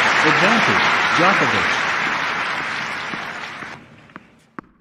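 A crowd applauds and cheers, then fades away.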